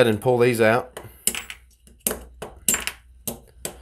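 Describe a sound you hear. A screwdriver clicks and taps against small metal parts.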